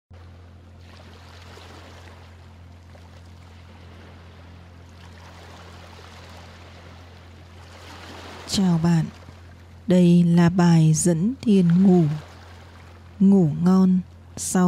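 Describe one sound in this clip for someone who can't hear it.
Gentle waves lap softly against a shore.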